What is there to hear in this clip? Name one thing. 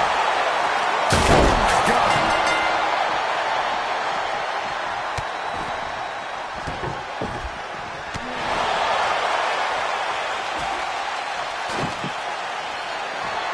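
A large crowd cheers loudly throughout.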